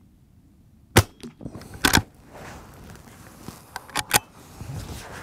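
A rifle fires loud, sharp shots outdoors.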